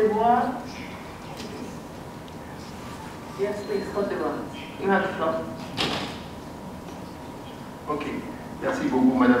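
A man speaks with pauses through a microphone and loudspeakers in a large hall.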